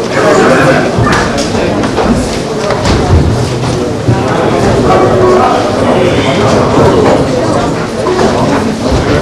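A crowd of men talks loudly over one another in an echoing room.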